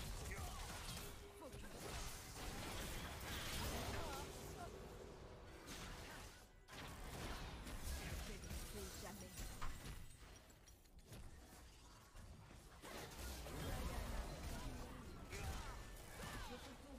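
Video game fighting effects whoosh and clash.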